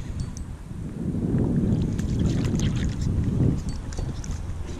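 A fish splashes and flaps at the water's surface.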